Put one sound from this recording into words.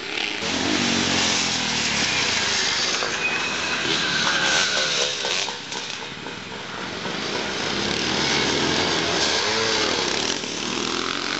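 Motorbike engines rev and roar loudly outdoors, rising and falling in pitch.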